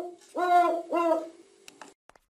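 A phone chimes a short notification tone.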